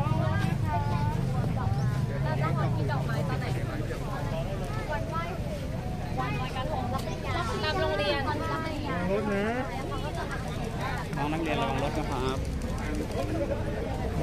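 A crowd murmurs outdoors.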